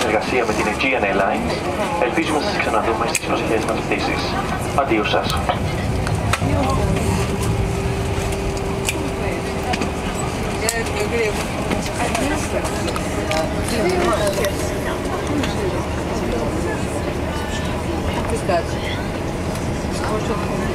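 A jet airliner's engines hum and rumble steadily as the plane taxis, heard from inside the cabin.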